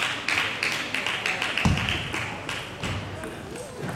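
A ball clicks rapidly back and forth off paddles and a table.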